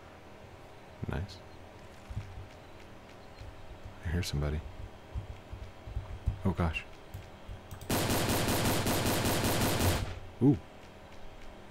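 A man speaks casually into a headset microphone, close by.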